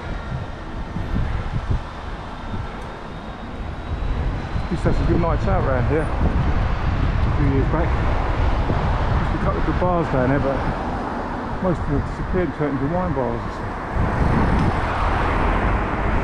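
A motorcycle engine hums and revs while riding.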